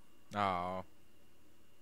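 A man laughs briefly, close to a microphone.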